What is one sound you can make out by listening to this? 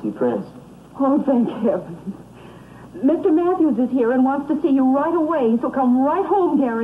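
A woman speaks excitedly into a telephone.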